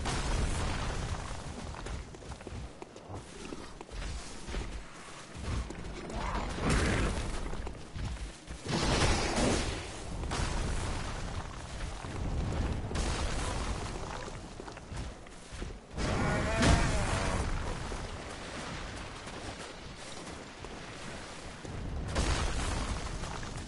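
Footsteps crunch on grass and stone.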